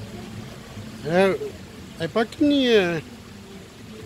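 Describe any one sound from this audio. A young girl squeals and exclaims excitedly nearby.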